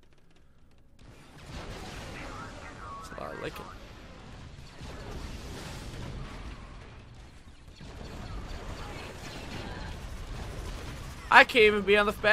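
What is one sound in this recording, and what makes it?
Blasters fire and explosions boom in a video game.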